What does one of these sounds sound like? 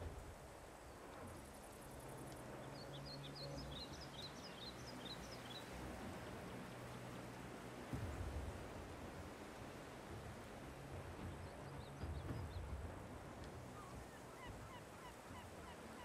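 Tank tracks roll and clank over rough ground.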